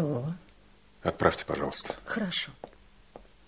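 A young woman speaks.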